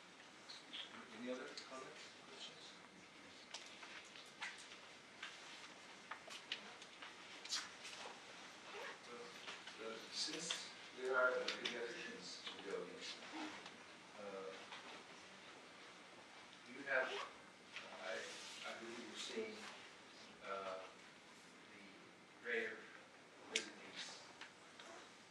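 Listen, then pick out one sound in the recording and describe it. A man speaks at a distance in a large echoing hall, heard through a loudspeaker.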